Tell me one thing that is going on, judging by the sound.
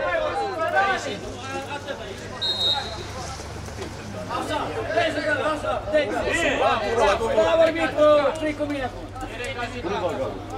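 Several men talk and call out with animation close by.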